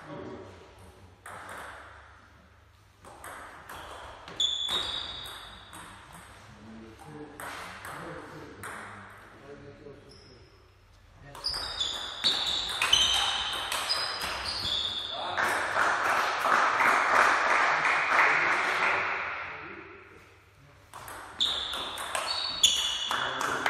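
A ping-pong ball clicks back and forth off paddles and a table in an echoing hall.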